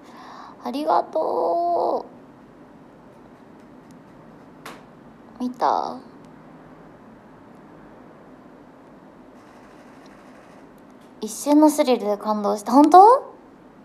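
A young woman speaks softly and playfully close to a microphone.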